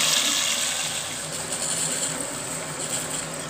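Rice grains pour into a pan with a soft rustle.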